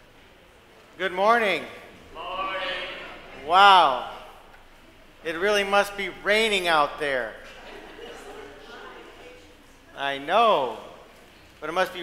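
A man speaks slowly and calmly through a microphone in a large echoing hall.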